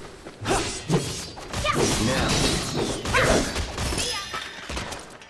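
Metal blades clash and scrape with showers of sparks.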